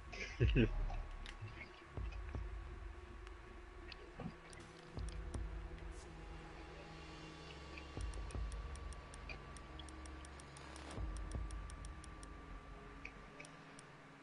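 Menu selections tick in short, quick clicks.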